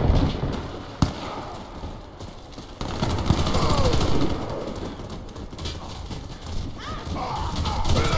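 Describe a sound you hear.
Footsteps thud on a hard floor as a game character runs.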